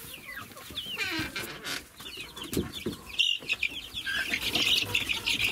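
Chicks cheep with rapid high peeps.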